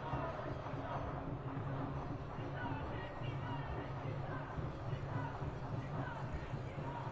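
A large crowd chatters and calls outdoors.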